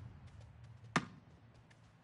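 A football is kicked with a sharp thump.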